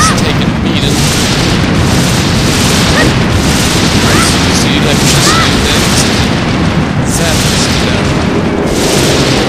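A deep, steady rumbling roar fills the background.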